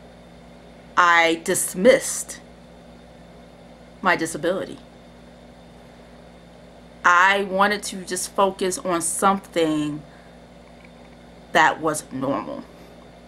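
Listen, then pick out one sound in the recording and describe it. A young woman talks expressively into a nearby microphone, in short bursts with pauses.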